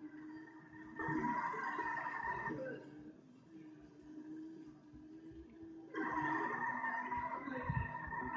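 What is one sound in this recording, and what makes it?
Car tyres screech as the car skids through turns.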